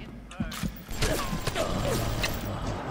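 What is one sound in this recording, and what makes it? A machine gun fires a short burst.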